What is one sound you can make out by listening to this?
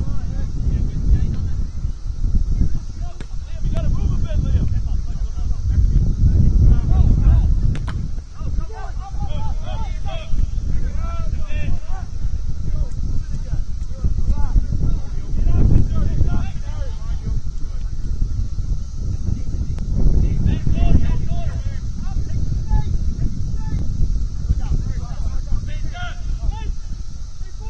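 Players shout and call out to each other across an open field.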